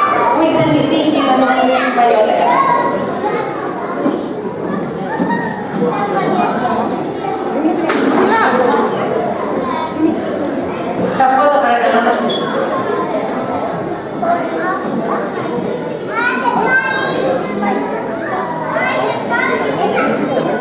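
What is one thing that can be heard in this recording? A woman speaks into a microphone over a loudspeaker in an echoing hall.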